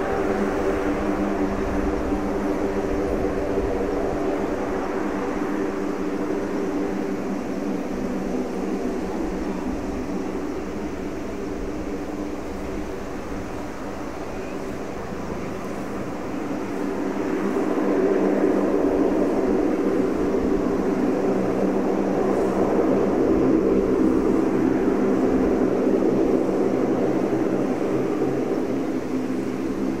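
A four-engine C-130J turboprop taxis with its propellers droning.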